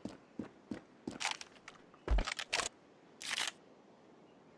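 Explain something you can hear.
Footsteps tread on hard ground.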